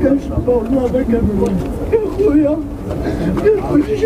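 A man sobs and cries out nearby.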